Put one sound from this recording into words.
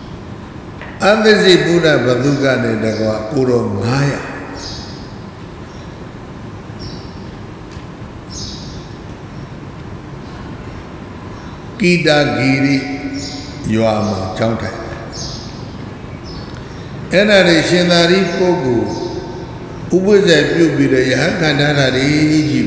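An elderly man speaks with animation into a close microphone, in bursts with long pauses.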